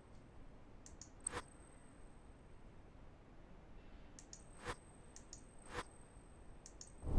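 Short menu clicks sound now and then.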